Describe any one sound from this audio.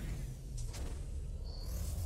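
A spaceship engine hums low and steady.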